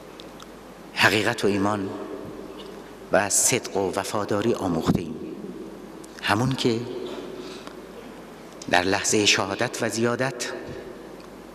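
A middle-aged man speaks forcefully into a microphone in bursts, with reverberant pauses.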